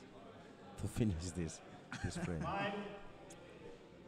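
Pool balls click sharply against each other.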